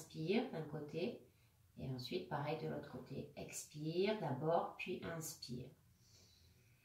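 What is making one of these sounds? A young woman speaks calmly and softly close by.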